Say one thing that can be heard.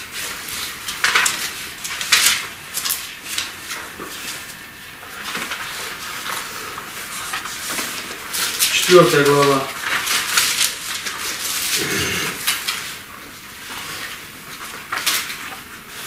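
Paper rustles and crackles close by.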